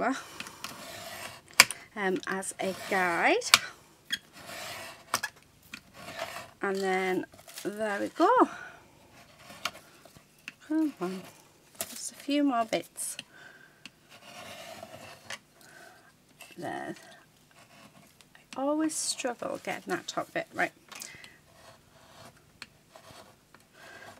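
A craft knife scratches along paper.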